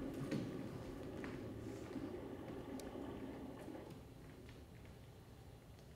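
Bare feet softly tap and shuffle on a wooden stage floor.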